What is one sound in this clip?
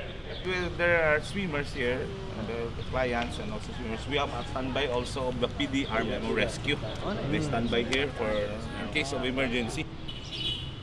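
A middle-aged man talks with animation outdoors, close by.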